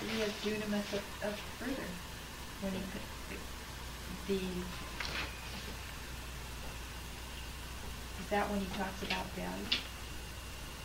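A woman reads aloud calmly, close by, in short phrases with pauses.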